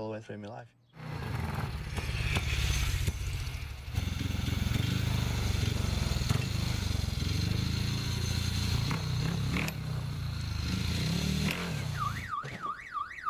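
A motorcycle engine rumbles close by.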